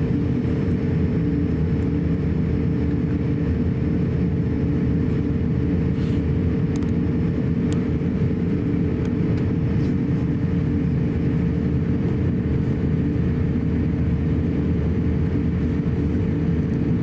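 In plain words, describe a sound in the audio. Jet engines hum and roar steadily as an airliner taxis.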